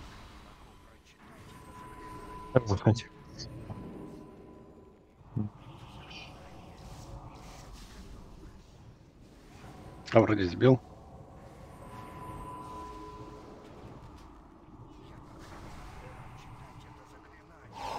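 Magic spells crackle and whoosh in a busy battle.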